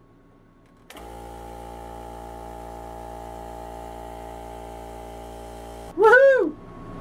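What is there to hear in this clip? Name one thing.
An air compressor motor runs with a steady hum.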